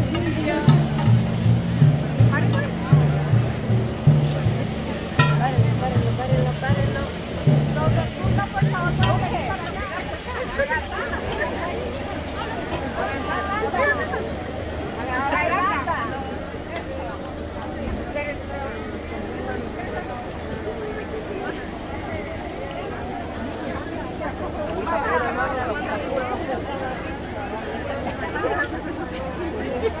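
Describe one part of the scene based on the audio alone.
A large crowd murmurs and talks outdoors.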